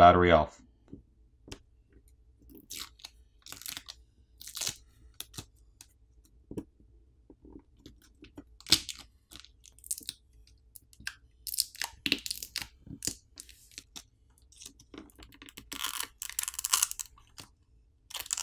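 A plastic pry tool scrapes and clicks under a phone battery.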